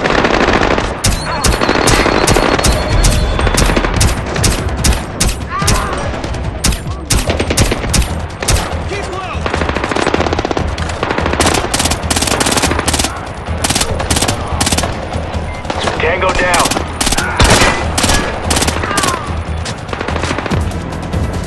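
Gunshots crack in quick bursts, sometimes close and sometimes farther off.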